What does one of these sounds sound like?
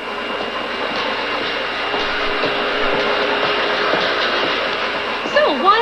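Footsteps tap along a hard floor.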